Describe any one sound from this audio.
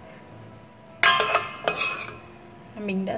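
A metal ladle clinks and scrapes against a pot.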